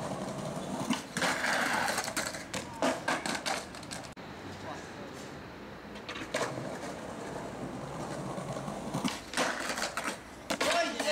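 A skateboard grinds and scrapes along a stone ledge.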